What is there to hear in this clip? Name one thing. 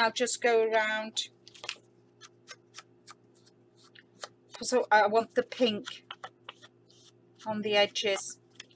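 Stiff paper rustles and creases under pressing fingers.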